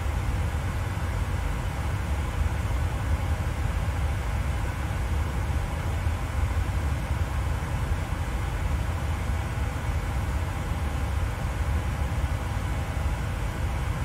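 Aircraft engines hum low and steady from inside a cockpit.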